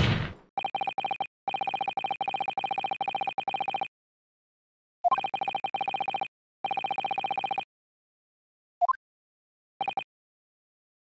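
Rapid electronic blips tick in quick bursts.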